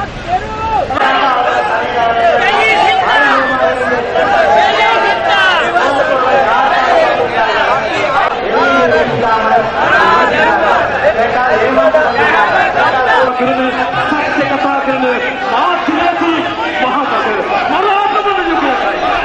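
A large crowd of men and women chants and shouts outdoors.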